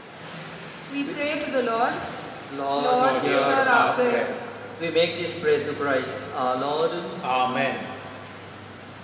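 A man speaks calmly through a microphone in a reverberant hall.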